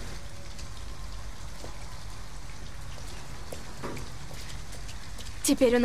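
Rain falls steadily on a street.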